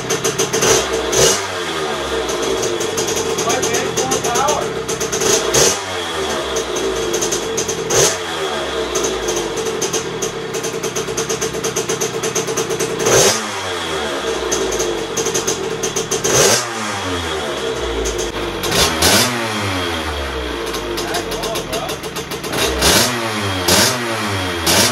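A small motorcycle engine revs up sharply again and again.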